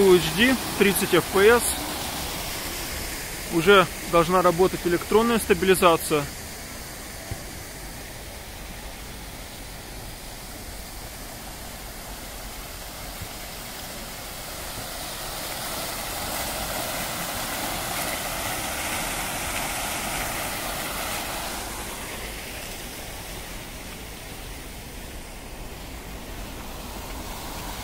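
Fountain water splashes and rushes steadily.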